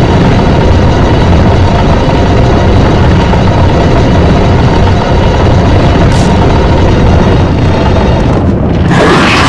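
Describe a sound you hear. A heavy stone block grinds and scrapes slowly across a stone floor.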